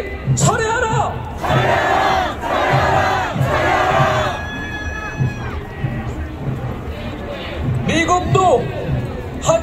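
A large crowd of protesters chants loudly outdoors.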